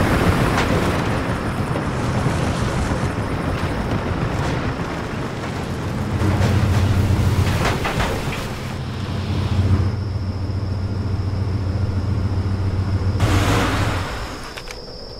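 A vehicle engine rumbles low and steady while driving over rough ground.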